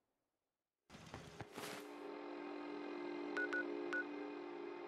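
A handheld device clicks and whirs as it opens.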